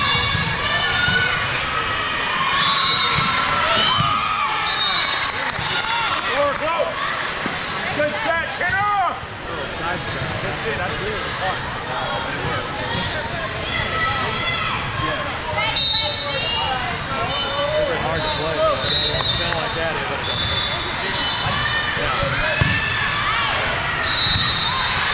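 Shoes squeak sharply on a hard court floor in a large echoing hall.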